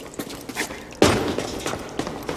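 A character lands heavily on a metal platform.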